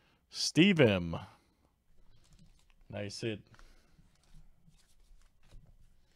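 Trading cards slide and rub against each other in a hand.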